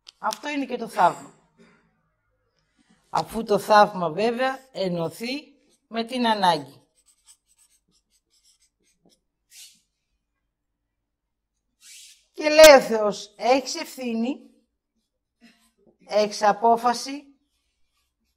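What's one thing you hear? A woman lectures calmly and clearly, close by, with pauses.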